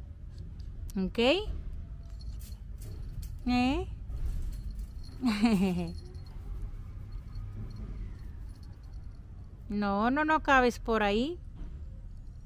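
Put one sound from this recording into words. A small dog yelps and whines in high, sliding cries close by.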